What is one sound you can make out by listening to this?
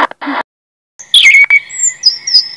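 A robin sings high, twittering notes.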